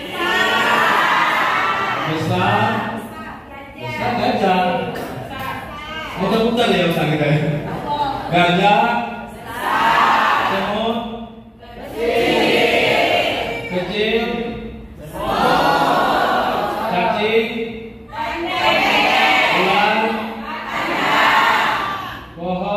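Young people clap their hands.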